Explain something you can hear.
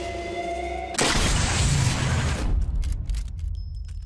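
A rifle shot cracks and booms loudly.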